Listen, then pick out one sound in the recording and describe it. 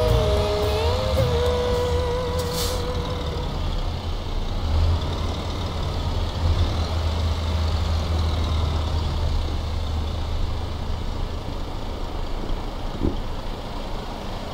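A diesel bus engine rumbles as the bus drives slowly.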